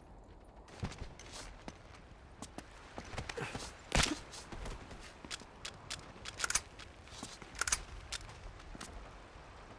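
Footsteps scuff lightly on stone.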